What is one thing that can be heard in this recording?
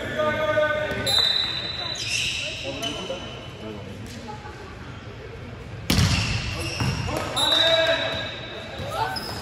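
Young men shout and call out to each other in an echoing hall.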